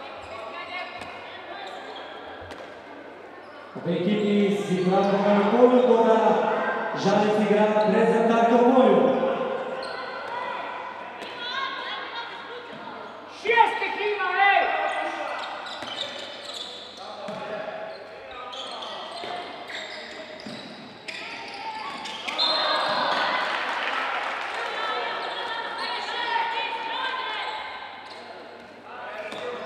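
A crowd of spectators chants and cheers in a large echoing hall.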